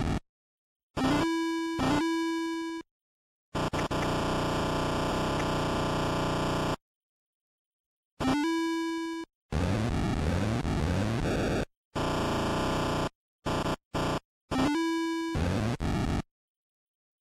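Electronic game tones beep sharply in short bursts.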